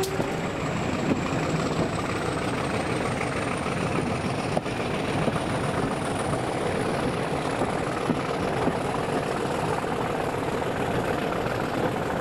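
A train rumbles and clatters steadily along the track.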